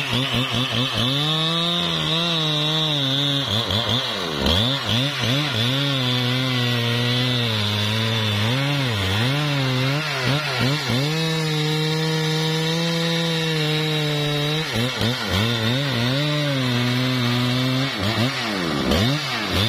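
A chainsaw cuts into wood.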